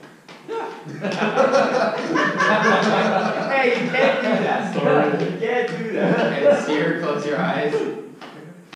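A group of men shout and cheer loudly together.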